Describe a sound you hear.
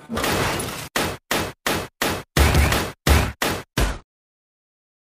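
Upbeat electronic music plays in short choppy bursts and then stops.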